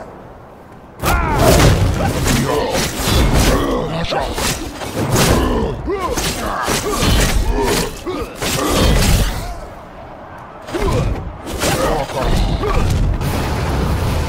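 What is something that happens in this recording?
Blades swish and clang in a quick fight.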